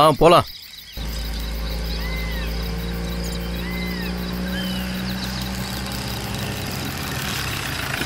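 A van's engine hums as it drives slowly closer.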